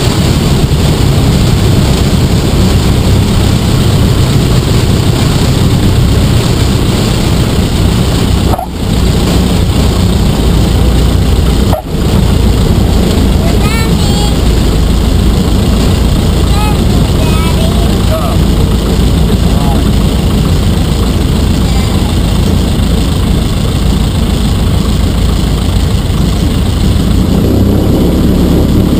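A small plane's engine drones loudly and steadily.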